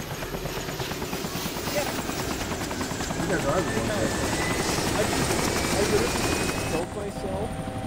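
A helicopter engine starts up with a whine that rises steadily in pitch.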